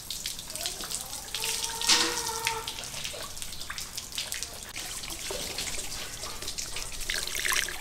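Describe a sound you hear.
Water from a hose splashes onto a wet surface.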